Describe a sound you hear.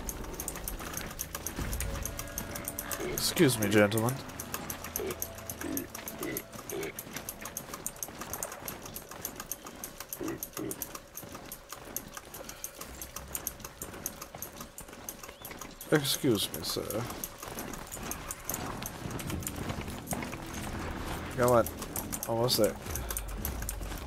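Metal hooves of a machine mount clatter steadily over the ground.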